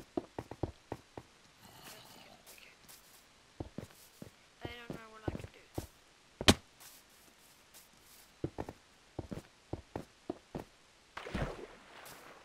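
Short soft thuds and clicks of blocks being broken and placed come in quick bursts.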